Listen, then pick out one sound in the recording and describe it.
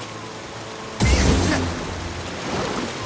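A body splashes hard into water.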